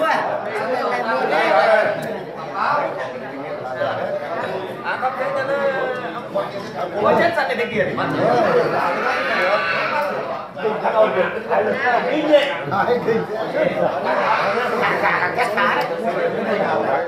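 A group of men talk and laugh over one another, close by.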